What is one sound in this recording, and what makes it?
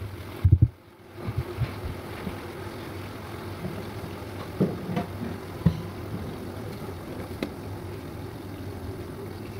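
Thick sauce simmers and bubbles in a pan.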